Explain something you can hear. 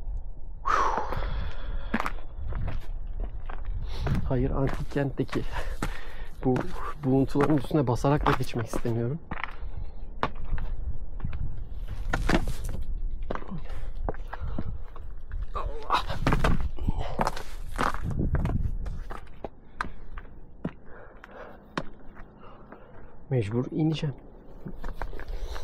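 Footsteps crunch on loose stones and gravel.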